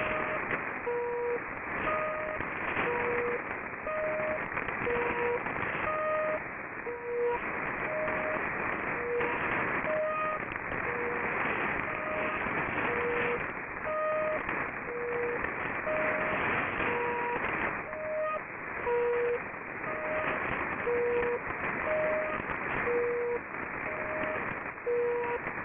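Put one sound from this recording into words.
Short beeping tones alternate in pitch through a radio receiver.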